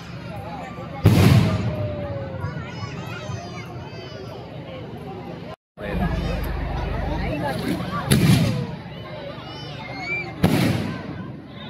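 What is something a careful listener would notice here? Fireworks burst with loud booming bangs outdoors.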